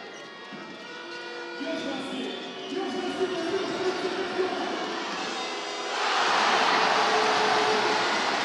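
A large crowd chants and cheers in an echoing arena.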